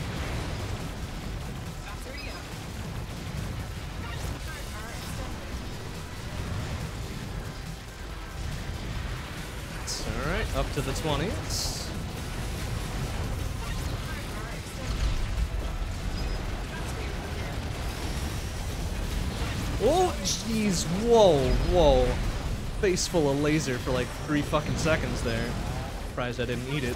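Video game gunfire and explosions crackle steadily.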